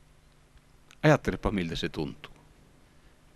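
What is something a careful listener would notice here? A man speaks briefly and expressively into a microphone.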